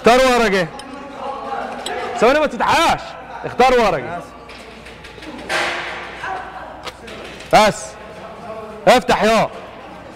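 Several young men talk and exclaim loudly into microphones.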